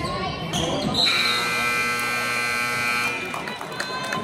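A referee's whistle blows long and shrill.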